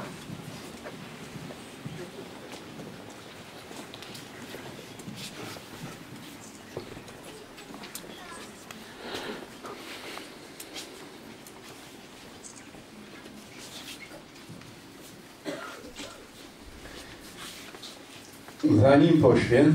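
A crowd murmurs quietly in the background.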